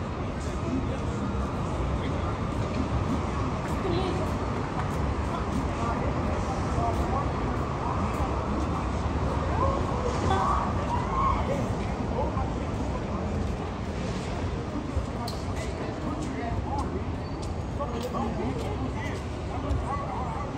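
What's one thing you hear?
Street noise with traffic hums steadily outdoors.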